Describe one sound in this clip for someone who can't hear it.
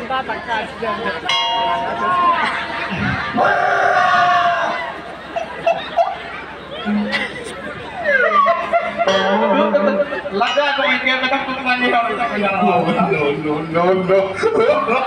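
A woman sings loudly through a microphone and loudspeakers.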